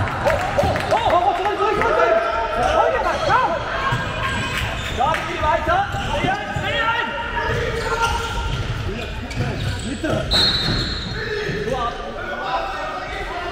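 Sports shoes squeak on a wooden court in a large echoing hall.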